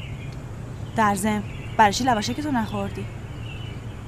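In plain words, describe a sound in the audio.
A young woman speaks earnestly close by.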